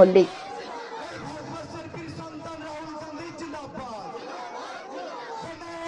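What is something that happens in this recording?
A crowd of men murmurs and chatters nearby outdoors.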